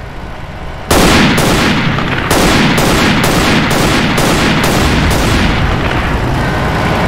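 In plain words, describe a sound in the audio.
A gun fires a rapid burst of loud shots.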